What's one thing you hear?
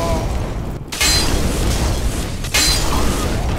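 A fire burst roars loudly.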